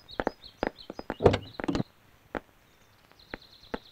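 A car door opens with a click.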